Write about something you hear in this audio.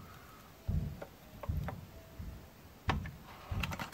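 A thick drink pours from a pouch into a glass.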